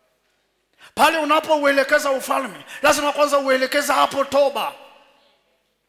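A man preaches forcefully into a headset microphone.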